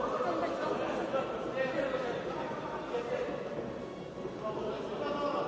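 A crowd murmurs and calls out in a large hall.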